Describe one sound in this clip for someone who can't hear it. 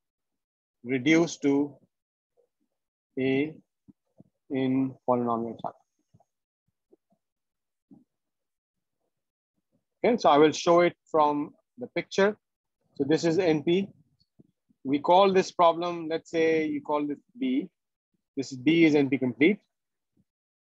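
A man speaks calmly over an online call, explaining at a steady pace with pauses.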